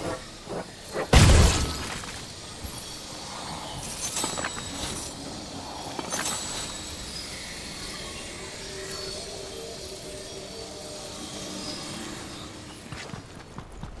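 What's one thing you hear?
Magical shimmering effects hum and sparkle in a video game.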